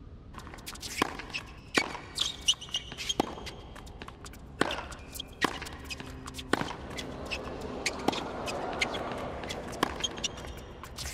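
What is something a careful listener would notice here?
A tennis ball is struck sharply back and forth with rackets.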